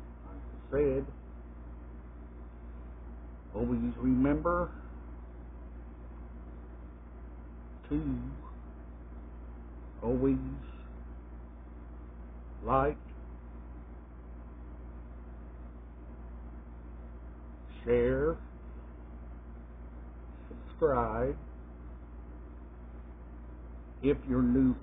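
A middle-aged man speaks close to the microphone in short, lively bursts with pauses between.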